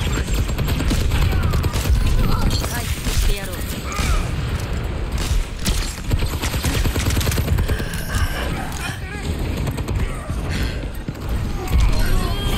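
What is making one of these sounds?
Rapid gunshots crack again and again.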